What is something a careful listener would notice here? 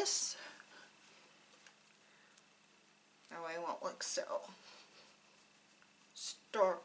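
A woman speaks calmly and close to a microphone, in short phrases.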